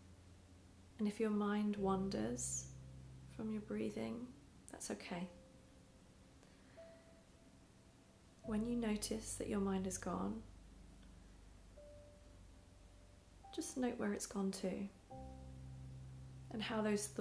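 A young woman speaks calmly and close to a microphone, in short phrases with pauses.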